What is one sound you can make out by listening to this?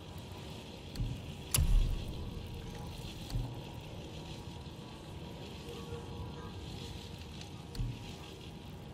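Short menu clicks and chimes sound now and then.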